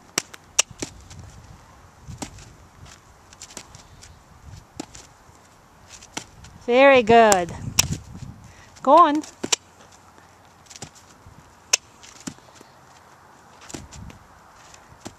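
A horse's hooves thud softly on dirt as it walks.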